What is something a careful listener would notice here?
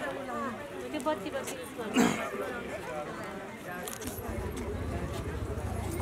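Several women chatter nearby in a lively crowd.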